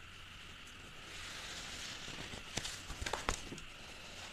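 Paper pages rustle as they are turned by hand.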